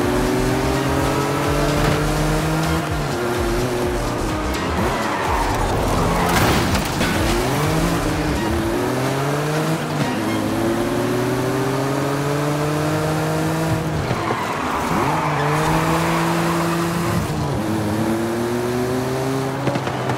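A sports car engine roars, rising in pitch and dropping with each gear change.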